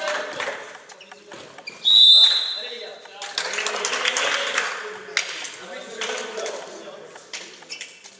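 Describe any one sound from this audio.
Young men shout and call to each other across an echoing hall.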